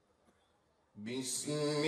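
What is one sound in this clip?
A man recites in a loud, drawn-out chant through a microphone and loudspeakers.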